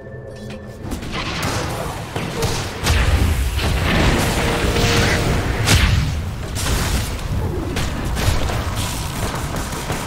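Game spell effects crash and boom loudly in a busy fight.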